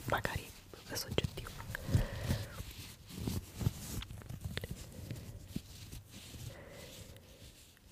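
Fabric rustles and crinkles close to a microphone.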